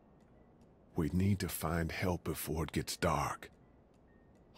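A man speaks worriedly and urgently.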